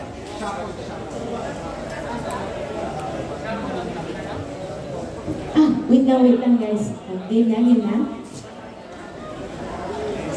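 A young woman sings through a microphone over loudspeakers.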